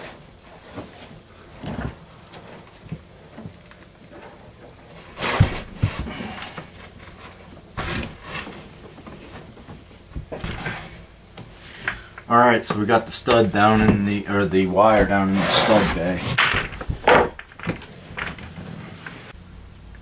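A man shuffles and knocks about on wooden boards in a cramped space.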